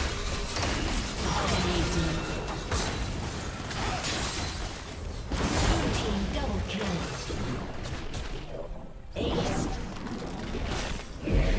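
Magic blasts and clashing weapons burst in a fast fight.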